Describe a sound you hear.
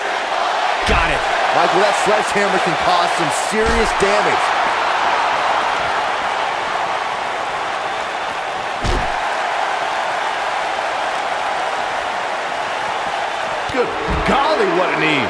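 Heavy bodies thud onto the floor.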